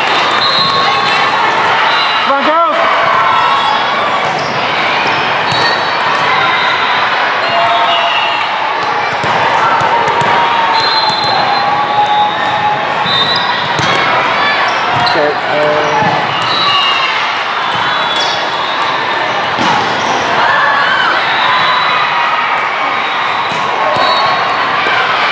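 Young women call out and cheer to each other.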